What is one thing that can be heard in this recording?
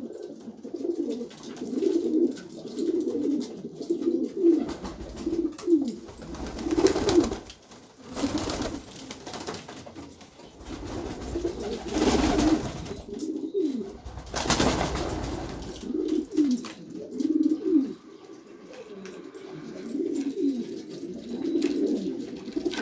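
Pigeons coo softly and repeatedly close by.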